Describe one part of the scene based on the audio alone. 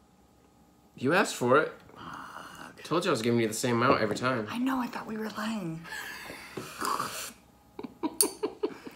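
A young woman talks and laughs, close by.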